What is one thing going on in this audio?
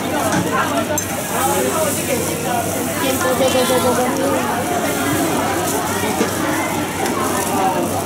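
Water hisses and sizzles on a hot griddle.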